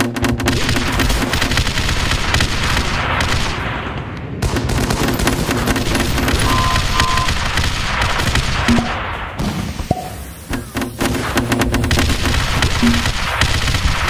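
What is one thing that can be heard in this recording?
Rapid gunfire and explosions crackle and boom in a game battle.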